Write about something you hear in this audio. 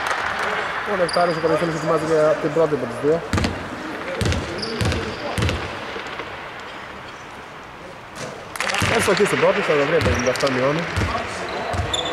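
Men shout and call out across the court.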